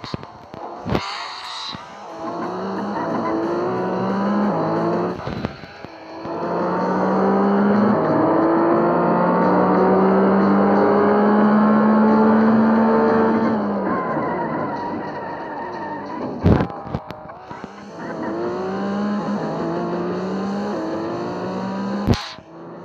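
A car engine roars and revs higher through the gears.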